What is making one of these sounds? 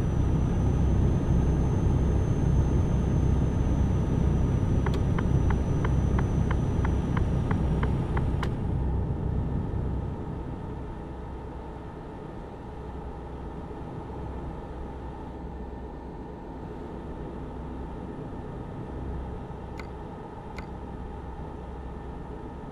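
A truck engine drones steadily, growing quieter after a while.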